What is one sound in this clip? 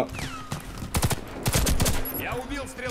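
A rifle fires several quick shots.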